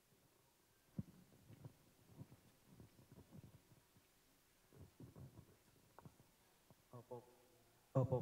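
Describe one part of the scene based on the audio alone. A crowd of guests murmurs quietly.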